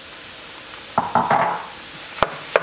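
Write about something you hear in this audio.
Raw chicken drops into a pan with a soft thud and sizzle.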